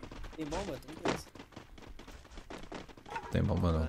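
Quick footsteps patter on a paved road.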